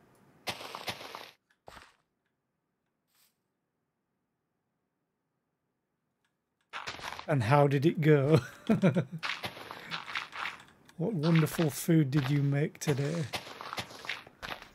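Blocks of dirt crunch and break under a pickaxe.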